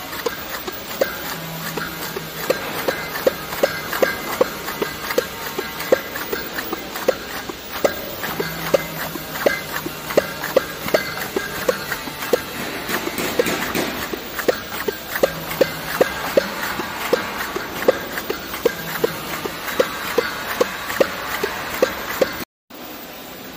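A labelling machine hums and clatters steadily.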